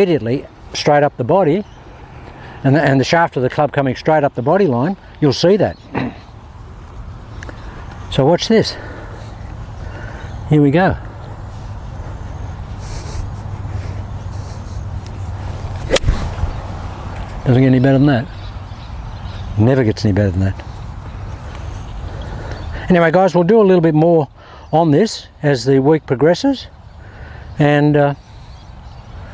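A man talks calmly and close to a microphone, pausing between phrases.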